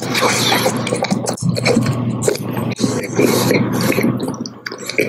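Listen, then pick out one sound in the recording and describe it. A man slurps and smacks his lips close up.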